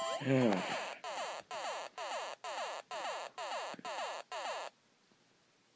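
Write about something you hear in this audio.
A handheld game console plays a bright, repeating level-end jingle from its small speaker.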